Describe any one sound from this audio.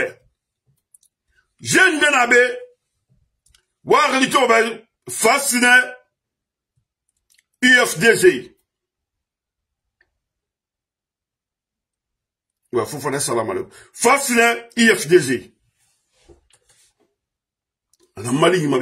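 A middle-aged man speaks close to the microphone with animation, in short bursts with pauses.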